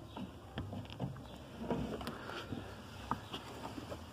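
A plastic plug clicks into a socket.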